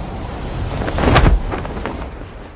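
A parachute snaps open with a sharp whoosh.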